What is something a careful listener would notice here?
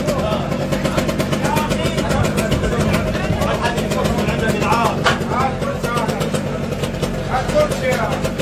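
Metal creaks and clanks as men pull at wreckage.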